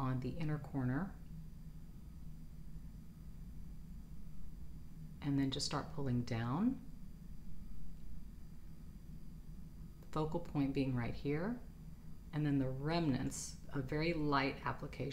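A woman talks calmly and close to a microphone, in short bursts with pauses.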